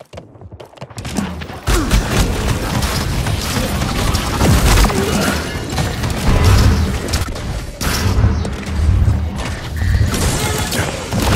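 Energy weapons fire and blast in rapid bursts.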